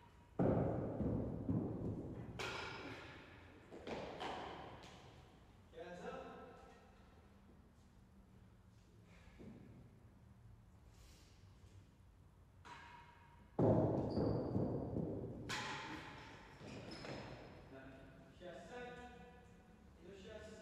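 A ball is struck hard and smacks against walls, echoing loudly through a large hall.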